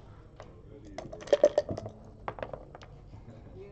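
Dice rattle and tumble across a board.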